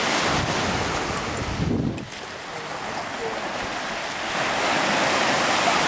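Waves wash and break on the shore.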